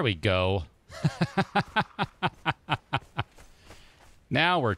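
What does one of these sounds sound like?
Footsteps thud quickly on sand.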